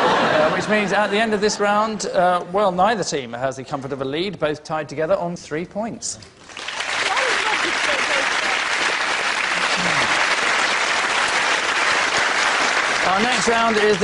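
A man speaks into a microphone with lively, dry delivery.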